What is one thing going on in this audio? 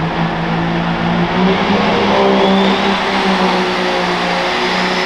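A turbocharger's whine rises high above a pulling tractor's engine.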